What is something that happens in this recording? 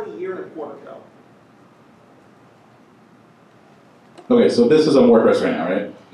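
A man speaks into a microphone, heard through a loudspeaker in a large room.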